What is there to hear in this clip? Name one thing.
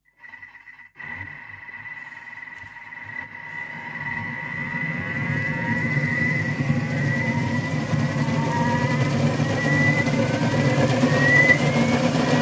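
A kitchen mixer motor whirs loudly and spins faster and faster.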